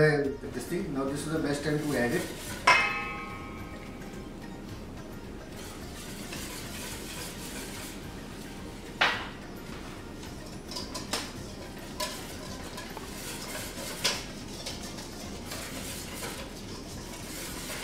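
A spoon scrapes and stirs food in a pan.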